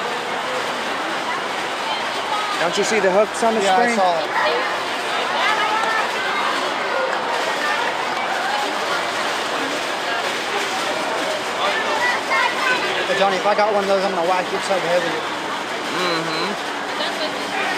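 A crowd of spectators murmurs and chatters.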